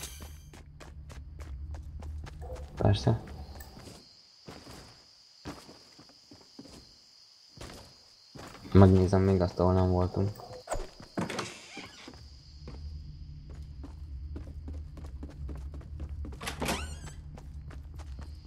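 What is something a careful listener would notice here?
Footsteps run quickly over grass and wooden floors.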